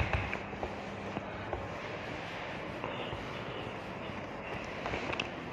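A duster rubs and squeaks across a whiteboard.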